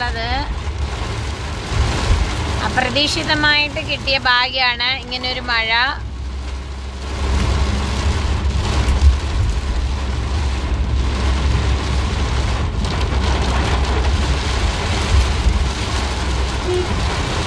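Windshield wipers swish across the glass.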